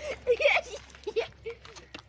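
A boy laughs.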